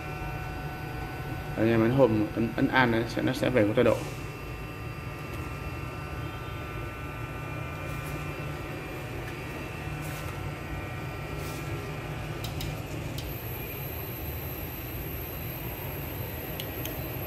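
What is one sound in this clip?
A 3D printer's motors hum and whine steadily as the print head moves.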